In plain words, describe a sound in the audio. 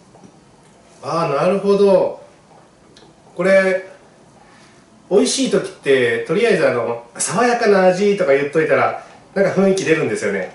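A man speaks animatedly close by.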